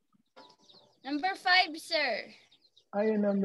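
A young woman talks over an online call.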